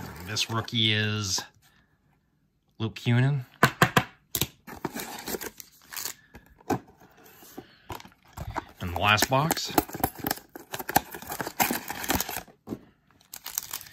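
Foil card wrappers crinkle.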